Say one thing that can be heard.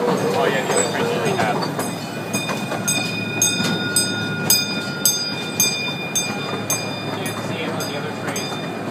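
A railway crossing bell rings rapidly and steadily.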